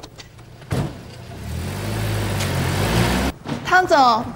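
A Jeep SUV pulls away.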